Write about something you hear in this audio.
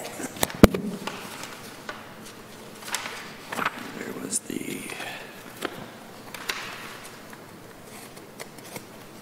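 Papers rustle and shuffle close to a microphone.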